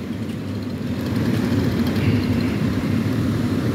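A chainsaw engine runs nearby with a steady drone.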